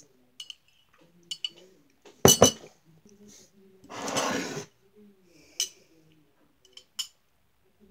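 A girl slurps a drink through a straw.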